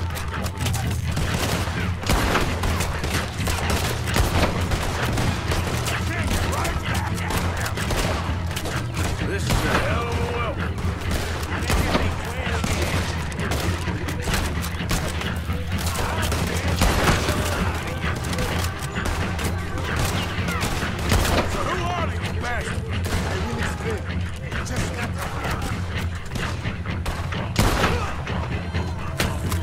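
Rifle shots crack repeatedly, close by.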